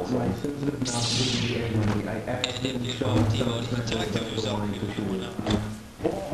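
A lightsaber swooshes as it swings.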